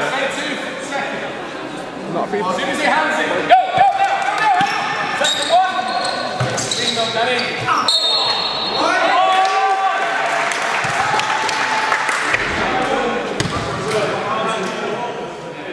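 Young men shout and call out across an echoing hall.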